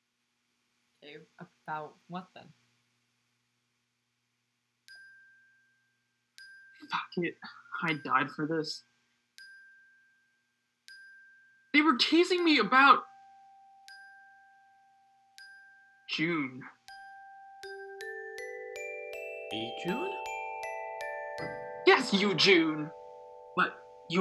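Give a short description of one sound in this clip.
A second young woman speaks through an online call.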